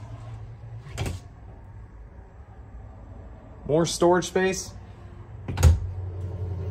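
A wooden cabinet door knocks as it opens and shuts.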